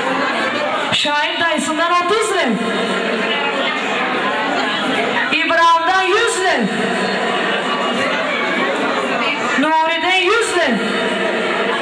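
A young woman calls out loudly through a microphone in a short burst, again and again.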